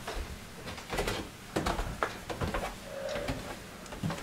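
Footsteps tap on a hard floor close by.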